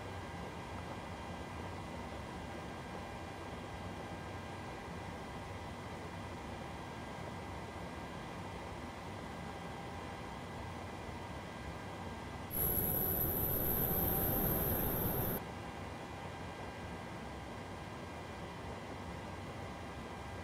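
A steady low hum of aircraft systems fills a cockpit.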